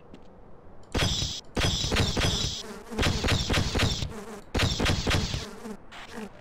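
A weapon fires in loud rapid bursts.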